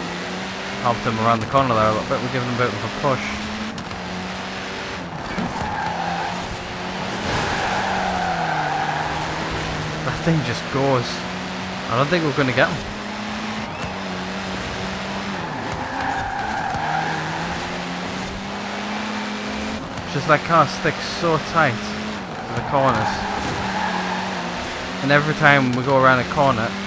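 A rally car engine roars loudly, revving up and dropping sharply with each gear change.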